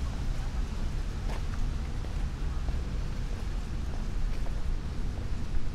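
Wind blows steadily outdoors, rustling through trees.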